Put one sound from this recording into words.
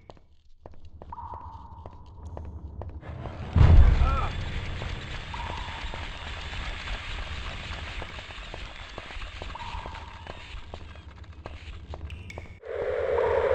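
Footsteps run quickly on a hard stone floor.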